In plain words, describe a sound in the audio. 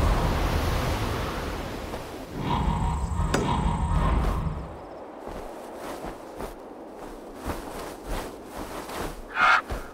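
A raven's wings flap.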